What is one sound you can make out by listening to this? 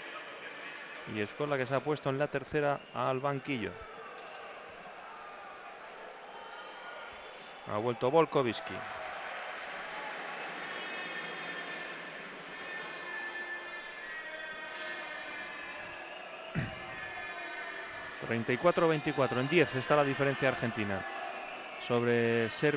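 A large crowd murmurs in a big echoing arena.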